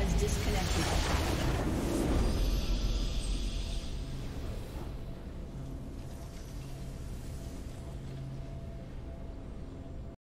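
A triumphant fanfare swells and rings out.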